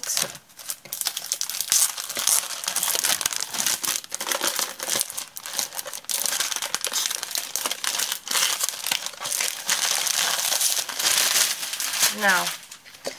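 A plastic sleeve crinkles and rustles as it is handled.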